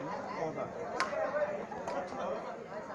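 A shuttlecock is struck sharply with a racket.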